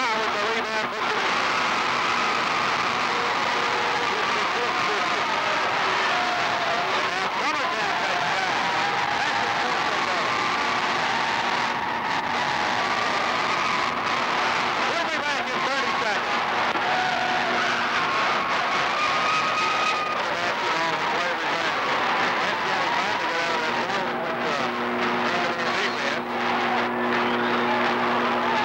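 A large crowd cheers and shouts loudly in an echoing gym.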